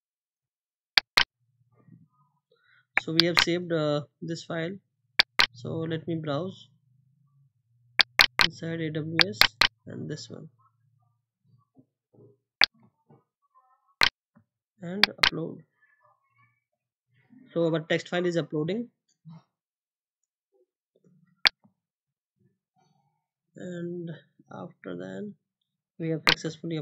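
A mouse button clicks now and then.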